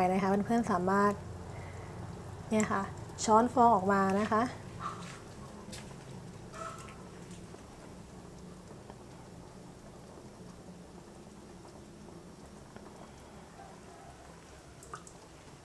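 A metal ladle clinks against the side of a pot.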